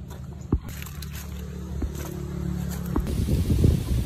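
Footsteps crunch on gravel and dry leaves.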